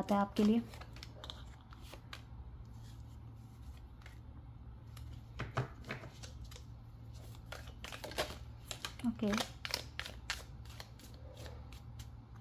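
Playing cards riffle and slap together as they are shuffled by hand.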